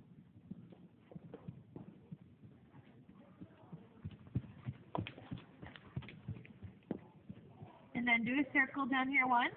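Hooves thud on soft ground as a horse moves.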